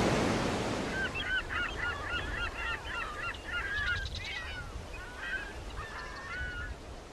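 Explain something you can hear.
A seagull cries repeatedly overhead.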